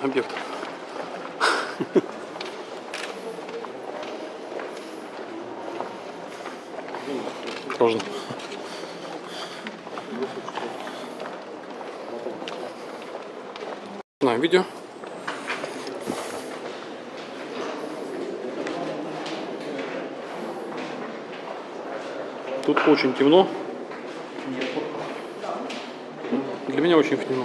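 A group of young adults talks and chatters close by in an echoing tunnel.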